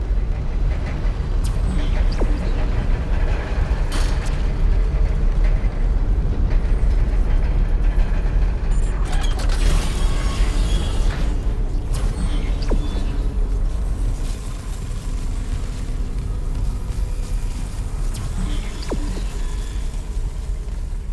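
A deep, low rumble drones steadily throughout.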